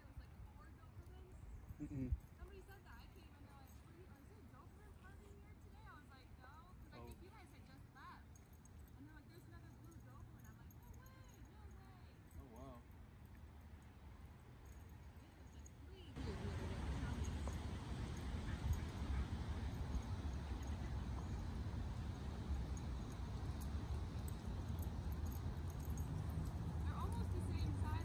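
Dogs' paws thud softly on grass as they run.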